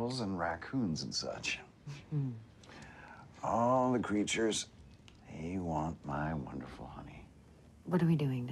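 A young woman speaks quietly nearby.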